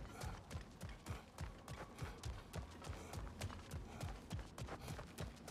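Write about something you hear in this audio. Heavy armoured footsteps thud steadily on stone.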